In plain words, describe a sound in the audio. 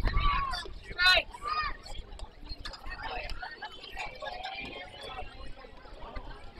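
Young players call out and chatter across an open ballfield.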